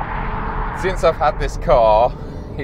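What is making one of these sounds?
A man speaks with animation from inside a car.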